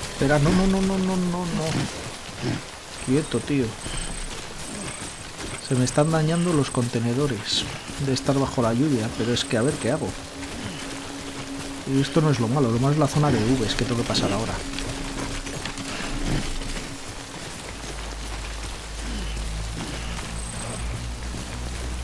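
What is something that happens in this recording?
Footsteps crunch on grass and stones.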